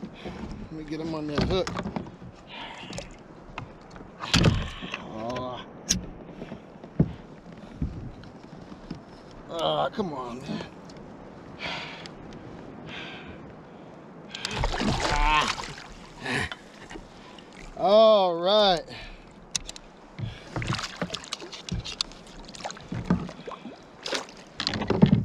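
Fishing gear clicks and knocks against a boat.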